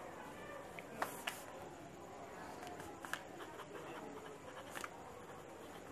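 A pen taps against paper.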